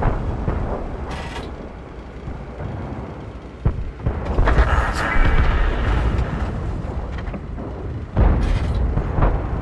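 A heavy tank engine rumbles low and steadily.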